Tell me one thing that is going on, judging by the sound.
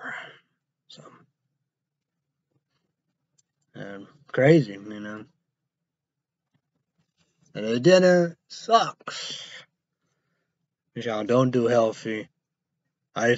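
A young man speaks casually in bursts, close to the microphone.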